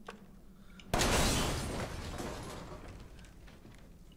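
A pistol fires a single loud shot that echoes briefly.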